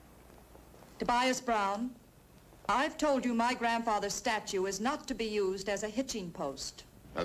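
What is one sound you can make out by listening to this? A woman speaks clearly and with feeling, close by.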